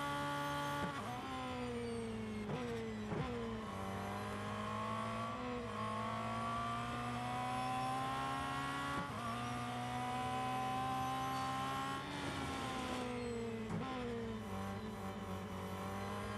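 A racing car engine drops in pitch as the car brakes for corners.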